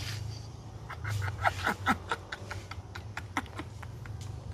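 An elderly woman laughs loudly and shrieks nearby.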